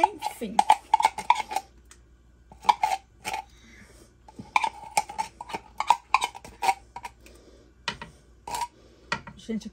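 A metal spoon scrapes and taps inside a tin can.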